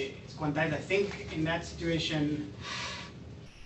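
A man lectures calmly through a microphone in an echoing room.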